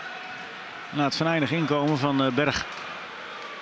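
A large stadium crowd roars loudly.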